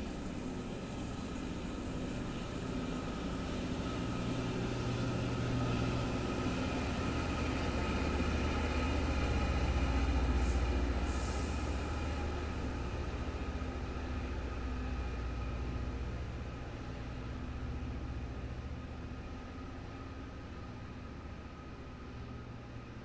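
A freight train rumbles slowly past on the rails.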